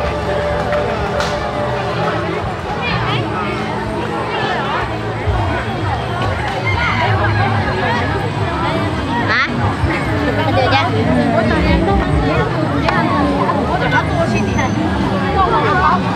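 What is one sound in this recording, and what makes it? A large outdoor crowd of men and women chatters loudly all around.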